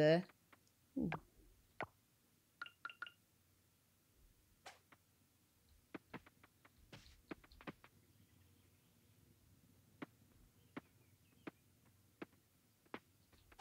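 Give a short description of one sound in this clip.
Footsteps tap softly on a dirt path.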